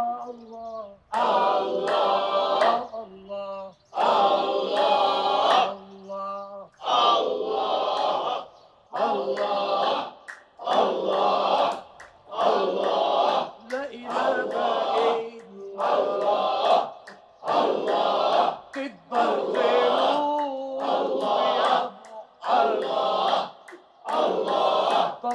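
A group of men chant together in long, rising and falling phrases.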